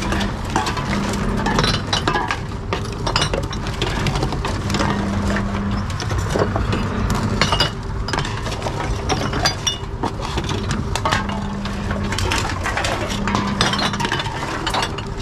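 Glass bottles and metal cans clink and rattle as they are handled.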